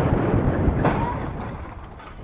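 A motorcycle crashes into a car with a sharp thud.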